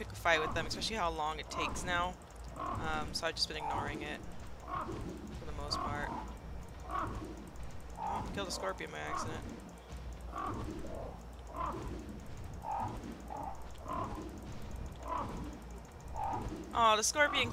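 A large winged creature flaps its wings in flight.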